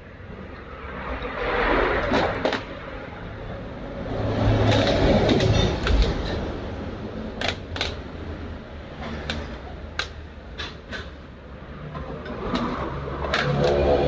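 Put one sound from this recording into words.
Metal parts clink and click as they are handled.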